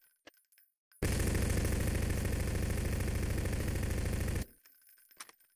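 A submachine gun fires a rapid, steady burst.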